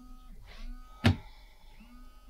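A phone taps down onto a table.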